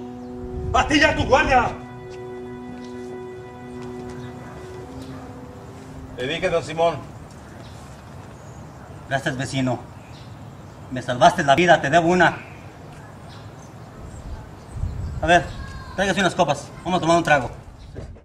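Men talk back and forth close by, with animation.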